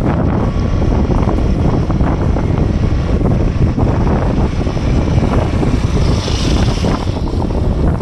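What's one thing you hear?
A motorcycle engine approaches and passes close by.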